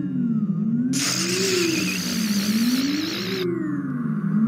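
An electric beam crackles and hisses.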